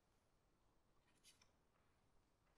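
A sheet of music paper rustles as a page is turned.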